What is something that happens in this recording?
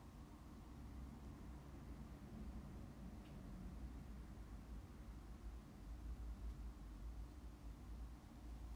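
A young woman speaks calmly and quietly close by.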